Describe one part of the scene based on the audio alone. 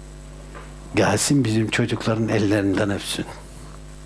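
An elderly man speaks calmly and clearly nearby.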